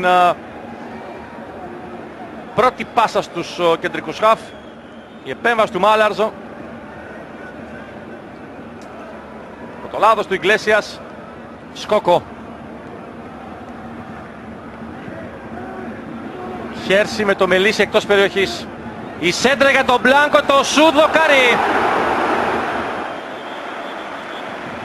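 A stadium crowd murmurs steadily in a large open space.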